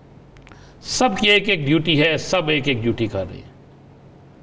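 A man speaks with animation into a microphone.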